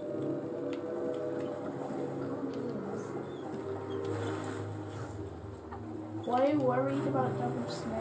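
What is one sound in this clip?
Gentle orchestral game music plays steadily.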